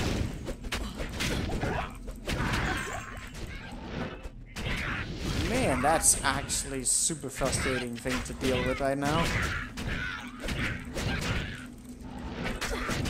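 Spells and blows crackle and thud as figures fight in a video game.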